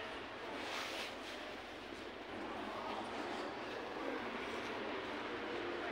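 Footsteps walk on stone paving outdoors.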